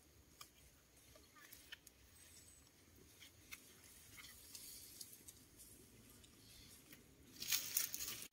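Bamboo strips tap and scrape as they are split by hand.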